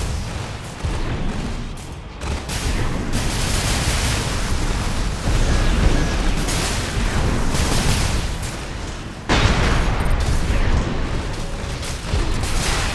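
Heavy gunfire and explosions boom and rumble loudly.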